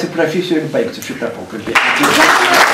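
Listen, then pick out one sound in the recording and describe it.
A man speaks into a microphone to an audience.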